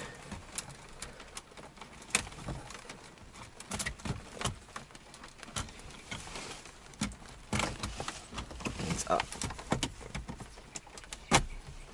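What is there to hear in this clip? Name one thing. Plastic dashboard knobs click as they are turned.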